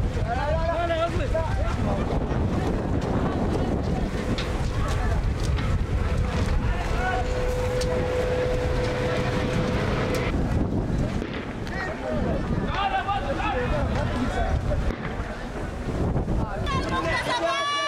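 A crowd of young men shouts and chants outdoors.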